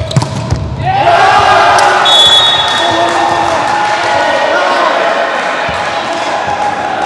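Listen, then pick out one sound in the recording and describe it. Young men shout and cheer together.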